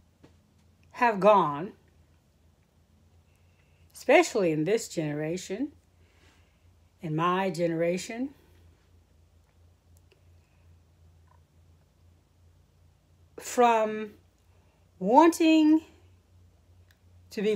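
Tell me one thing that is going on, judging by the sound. A middle-aged woman speaks calmly and close to a microphone, in short phrases with pauses.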